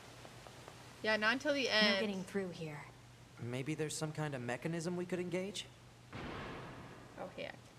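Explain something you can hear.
A young woman talks casually into a close microphone.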